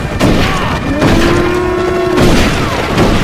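A bull bellows.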